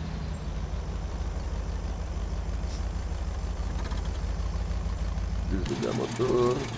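A truck engine idles with a low, steady rumble, then cuts out.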